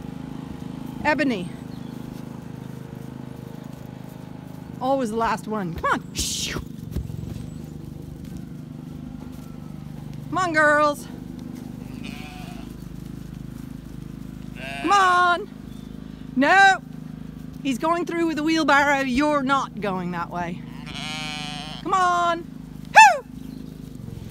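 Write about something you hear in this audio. Sheep bleat loudly and often, close by.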